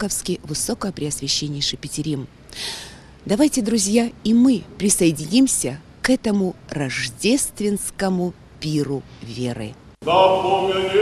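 A woman speaks calmly into a microphone close by.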